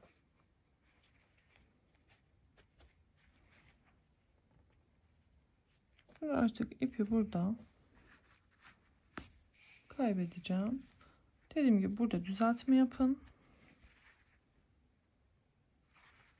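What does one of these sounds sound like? Yarn softly rustles as it is pulled through a crocheted toy.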